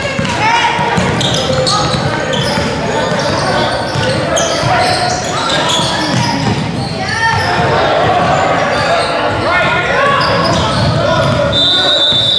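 A basketball bounces on the floor in a large echoing hall.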